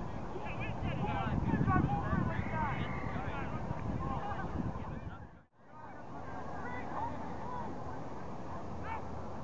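Young men and teenagers chatter and call out across an open field.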